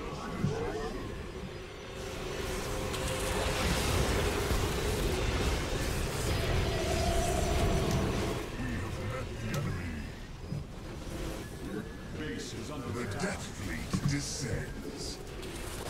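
Laser weapons zap and hum in a battle.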